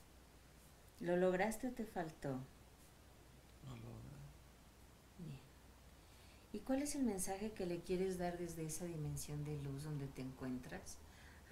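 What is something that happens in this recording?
A woman speaks calmly and slowly close by.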